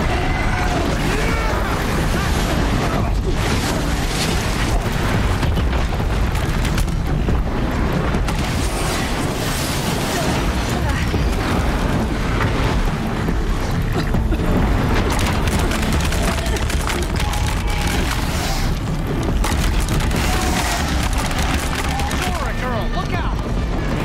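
Huge machines roar and clank as they move and attack.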